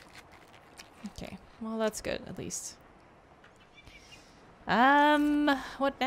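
A young woman speaks close to a microphone, with a drawn-out exclamation.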